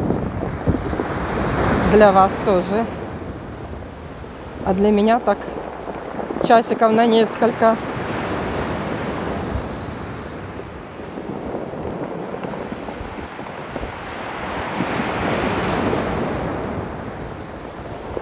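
Pebbles rattle and clatter as the surf drags them.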